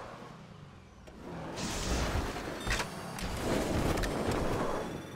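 A car crashes with heavy metallic thuds as it tumbles.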